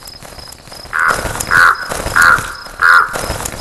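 A hen clucks in short bursts.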